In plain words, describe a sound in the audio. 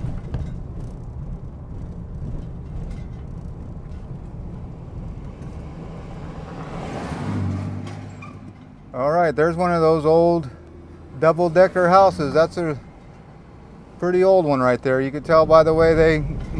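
A car drives along a street with a low road rumble.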